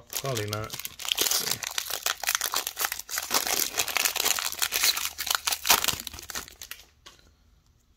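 A foil wrapper crinkles and tears open close by.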